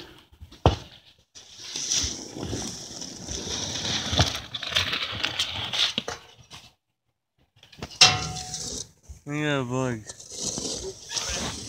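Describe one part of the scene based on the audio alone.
A garden hoe scrapes and chops into dry soil.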